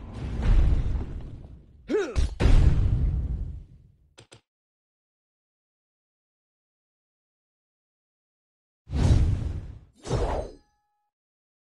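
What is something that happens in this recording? Magic blasts boom and roar in loud bursts.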